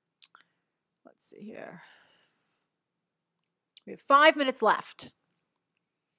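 A young woman speaks briefly and calmly, close to a microphone.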